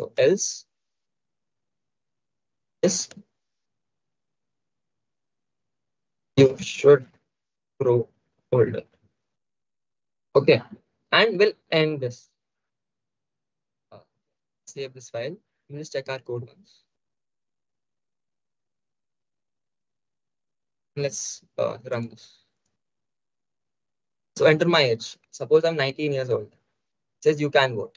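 A young man speaks calmly into a close microphone, pausing often.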